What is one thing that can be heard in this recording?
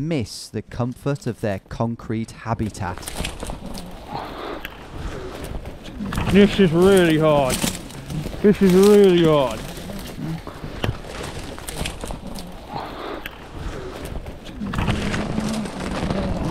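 Dry branches crackle and snap as someone pushes through brush.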